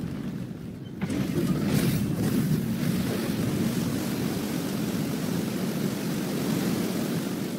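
A powerful stream of water gushes and roars.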